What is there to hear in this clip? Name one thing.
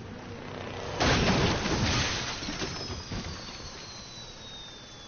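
A car crashes with a heavy rumbling impact.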